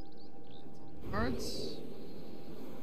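An eagle screeches overhead.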